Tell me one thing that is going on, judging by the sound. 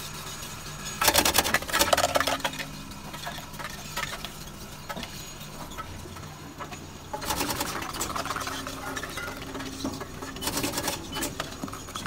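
Small items rattle and clatter into plastic bottles.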